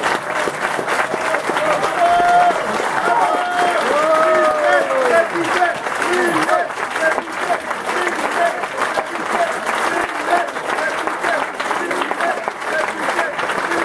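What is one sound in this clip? A crowd cheers and chants in unison.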